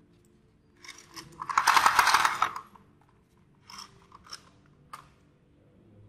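A toy rooster clicks and rattles as hands handle it.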